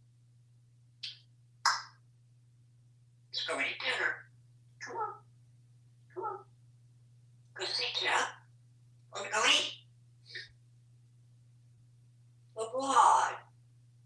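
A parrot squawks and chatters in short bursts close by.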